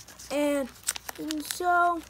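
Fingers rustle against plastic card sleeves.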